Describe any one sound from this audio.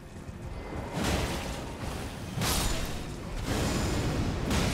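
Heavy blows and bursts of combat crash in a video game.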